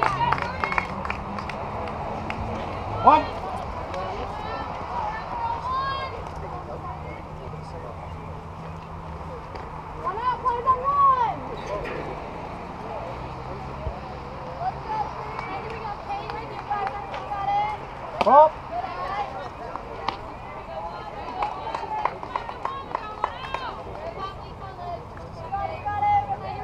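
Young women cheer and shout loudly nearby outdoors.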